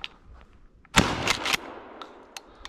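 A shotgun fires a single loud shot outdoors.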